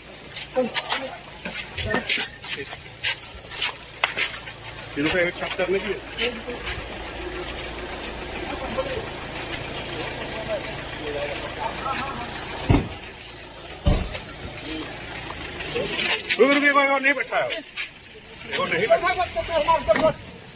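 Several men talk loudly and excitedly nearby.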